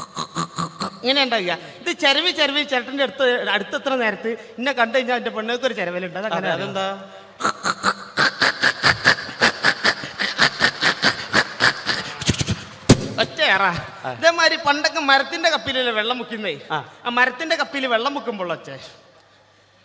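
A man speaks with animation through a microphone on a loudspeaker.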